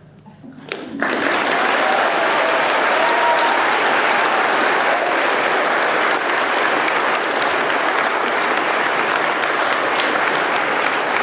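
A crowd applauds loudly.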